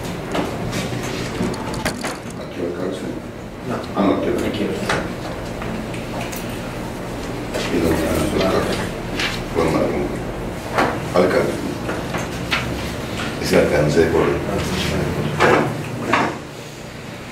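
Several men and a woman talk quietly nearby.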